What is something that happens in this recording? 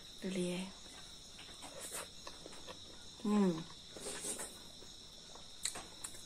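A young woman chews food wetly, close to a microphone.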